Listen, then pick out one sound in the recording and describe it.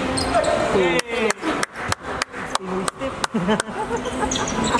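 A basketball bounces on a hardwood court in a large echoing hall.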